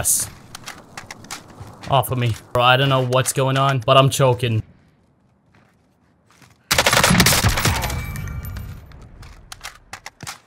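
Metal clicks and clacks as a rifle is reloaded.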